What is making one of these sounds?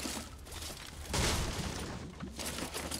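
A treasure chest bursts open with a sparkling, shimmering sound.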